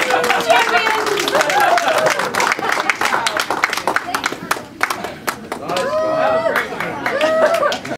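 A group of children shout and cheer together loudly.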